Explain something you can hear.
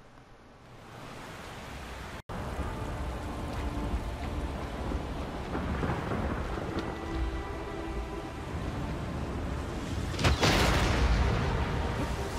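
Strong wind howls.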